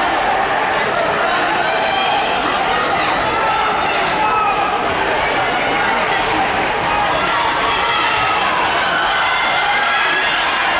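A crowd chatters and cheers loudly in a large echoing indoor hall.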